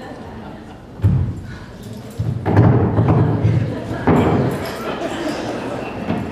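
A body thumps down onto a wooden stage.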